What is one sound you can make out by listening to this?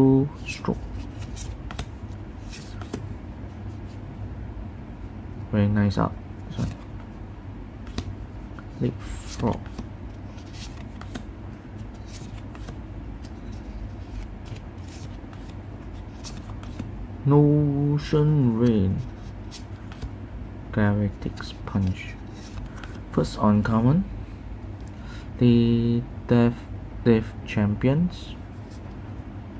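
Trading cards slide and flick against each other in a pair of hands.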